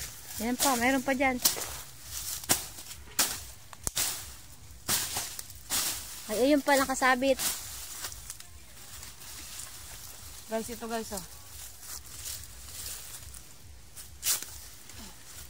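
Leafy plants rustle and stems snap as they are pulled up by hand.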